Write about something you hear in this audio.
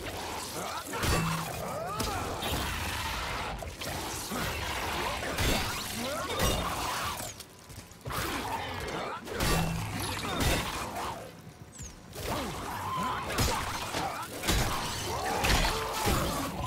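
Heavy blows thud and squelch against a creature's flesh.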